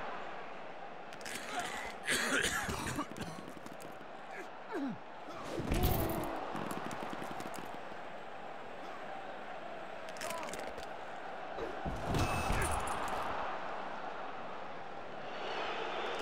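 Wrestlers thud onto the ring mat.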